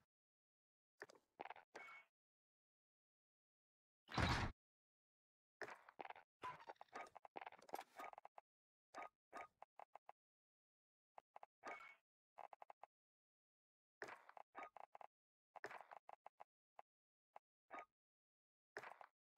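Short electronic menu blips and whooshes sound in quick bursts.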